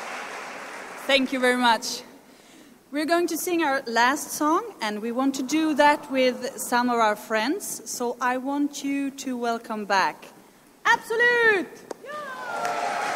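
A woman speaks with animation into a microphone on a stage.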